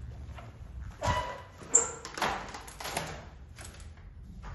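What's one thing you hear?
A glass door opens and shuts with a clatter.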